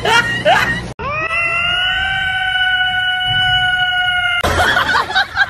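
A cat meows loudly into a microphone.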